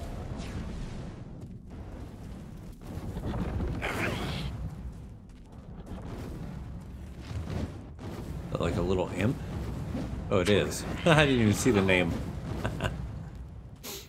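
A metal spear swishes through the air in quick strikes.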